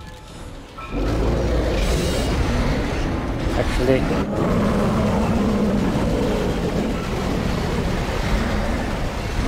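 An energy beam hums loudly.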